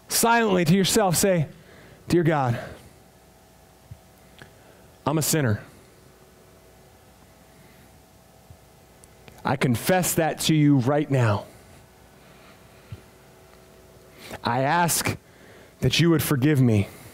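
A man speaks in short phrases through a microphone in an echoing hall.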